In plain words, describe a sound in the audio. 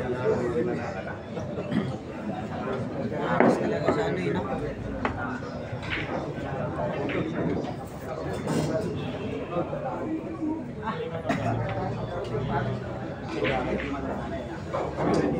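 A crowd of men chatters and murmurs nearby.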